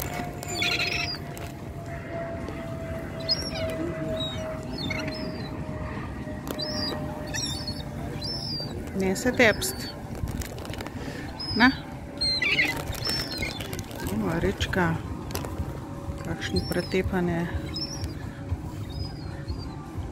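Gulls squawk and cry close by.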